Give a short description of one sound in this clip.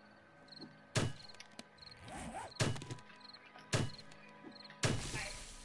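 A blade chops into a cactus plant with heavy, wet thuds.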